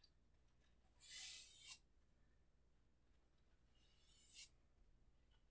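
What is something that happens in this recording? A painting knife scrapes paint across a canvas in short strokes.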